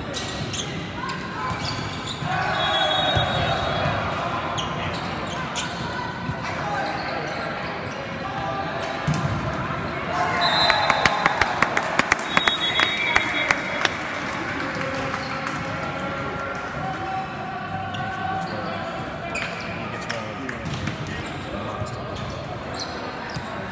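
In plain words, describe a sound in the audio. A volleyball is struck with sharp slaps in a large echoing hall.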